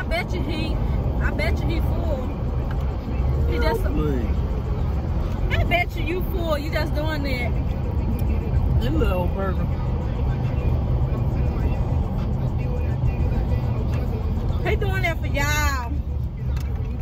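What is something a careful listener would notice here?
A young man talks with animation, close to the microphone inside a car.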